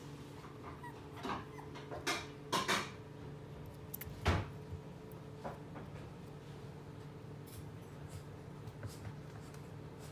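A puppy's paws patter on a wooden floor.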